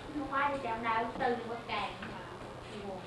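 A child speaks excitedly nearby.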